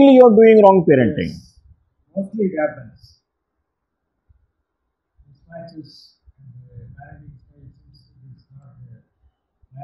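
A middle-aged man speaks calmly and close up, with pauses.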